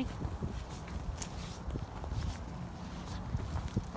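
Dry leaves rustle under a dog's paws.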